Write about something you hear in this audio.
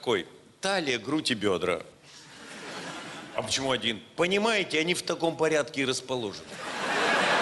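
An older man speaks slowly and expressively into a microphone.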